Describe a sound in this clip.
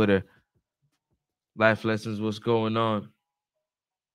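A young man speaks calmly and closely into a microphone.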